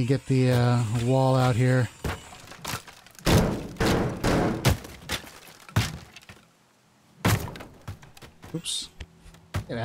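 A sledgehammer smashes repeatedly through a wall with crumbling debris.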